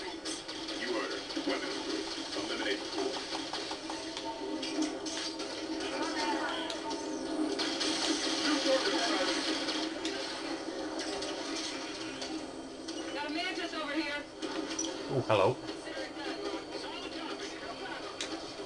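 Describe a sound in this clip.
Energy weapons fire in short bursts amid a battle's rumble.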